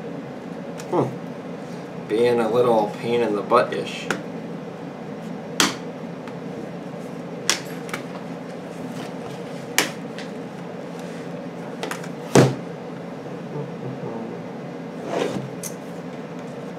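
A plastic laptop case clicks and knocks as it is handled.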